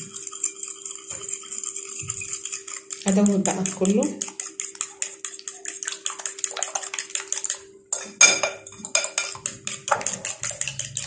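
A fork whisks quickly against a ceramic bowl, clinking rapidly.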